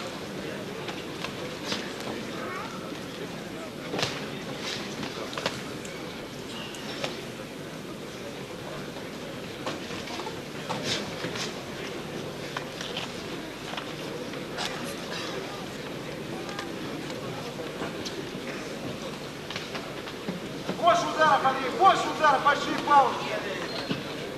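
Boxing gloves thud against a boxer's body and head.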